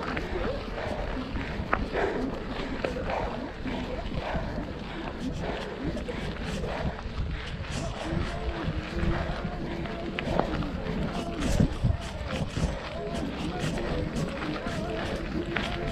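Wind rumbles across the microphone outdoors.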